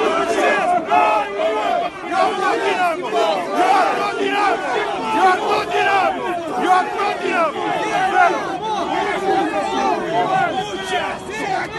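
A crowd of men shouts and chants loudly close by.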